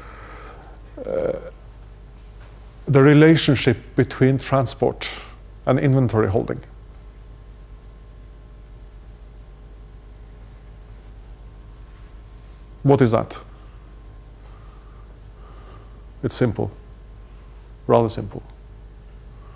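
A man speaks in bursts with long pauses, in a large echoing hall.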